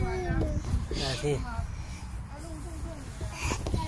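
A child slides down a plastic tube slide with a rumbling rub.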